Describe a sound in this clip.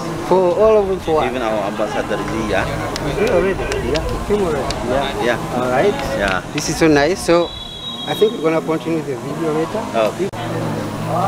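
A second man answers cheerfully nearby.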